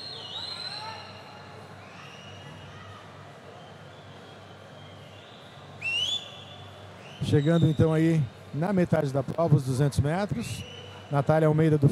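Swimmers splash steadily through the water of an echoing pool.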